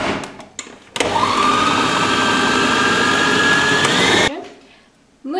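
A food processor motor whirs loudly, rising in pitch.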